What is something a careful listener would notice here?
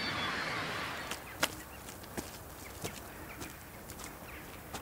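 Rubber boots squelch and tramp through mud.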